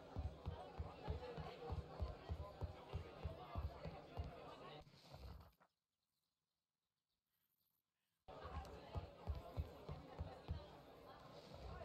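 Footsteps tap quickly across a wooden floor.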